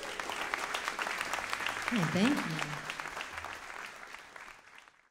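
A large audience claps in an echoing hall, fading toward the end.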